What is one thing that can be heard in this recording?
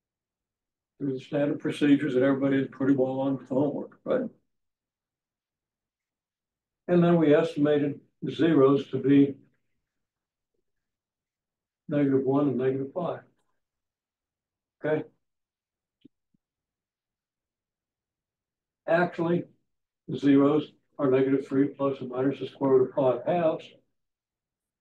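An elderly man lectures calmly in bursts, with pauses between phrases.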